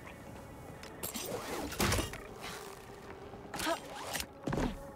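A climber scrapes and scrambles over rock.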